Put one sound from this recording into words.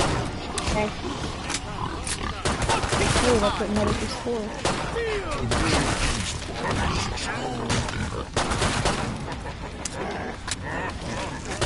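A pistol magazine clicks out and in during a reload.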